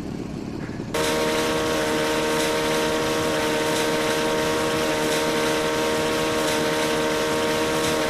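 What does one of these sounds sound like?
A jet ski engine hums steadily.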